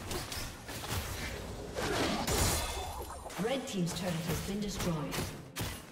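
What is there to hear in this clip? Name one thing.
Video game sound effects of an axe striking in combat play.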